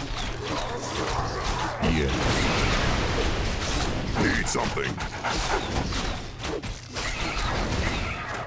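Swords clash and clang in a fierce fight.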